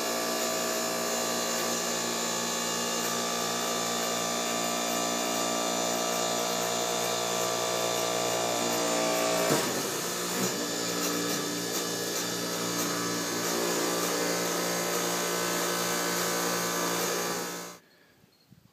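A hydraulic machine hums steadily.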